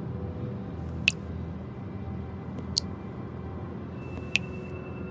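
Water drips from a tap.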